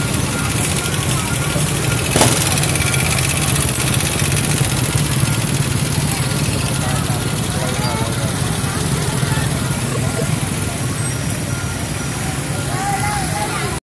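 Motorbike engines idle and rumble steadily in busy street traffic.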